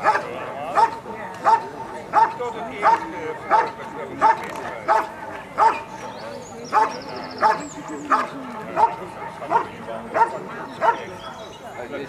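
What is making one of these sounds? A dog barks loudly and steadily, close by.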